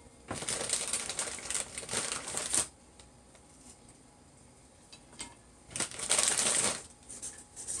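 A plastic snack bag crinkles and rustles as it is handled.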